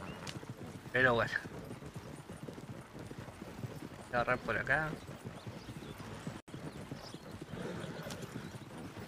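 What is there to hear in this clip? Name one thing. A horse-drawn carriage rattles and creaks as it rolls over a dirt track.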